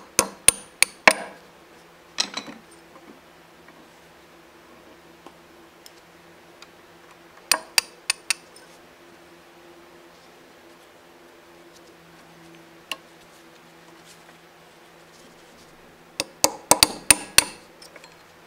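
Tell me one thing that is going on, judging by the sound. Metal tools clink and tap against a metal gearbox.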